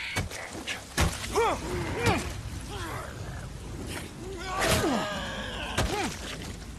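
A man cries out and groans in pain.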